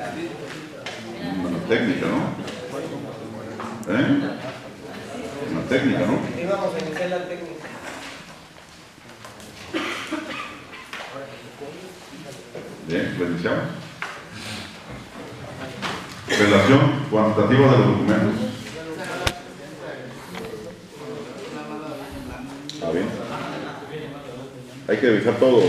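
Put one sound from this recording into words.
Several men murmur and talk quietly in the background.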